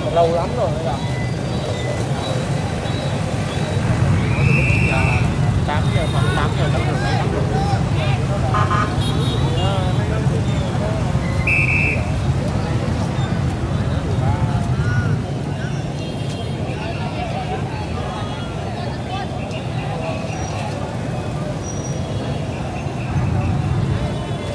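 Motorbike engines idle and rumble on a busy street.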